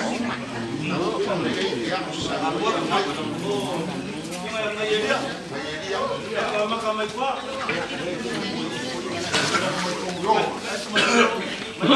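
Several adult men talk with one another, their voices overlapping.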